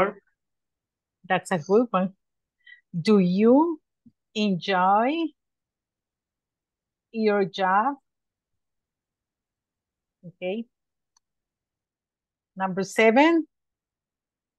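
A woman speaks slowly and clearly over an online call, in short phrases with pauses.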